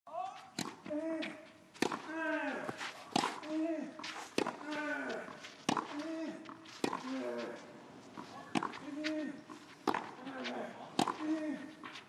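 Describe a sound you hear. Tennis rackets strike a ball back and forth in a steady rally.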